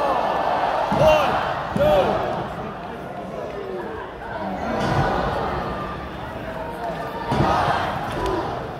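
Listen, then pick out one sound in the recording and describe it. A wrestler's body thuds onto a wrestling ring.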